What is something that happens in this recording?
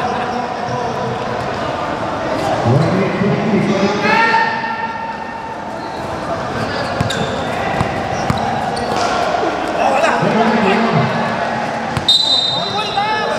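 Men shout during a basketball game.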